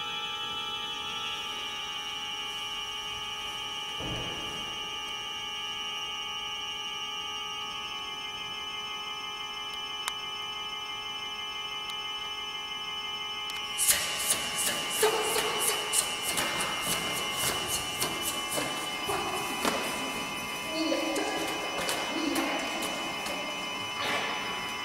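An organ plays sustained chords in a large echoing hall.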